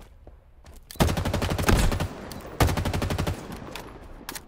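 A gun fires in loud rapid bursts.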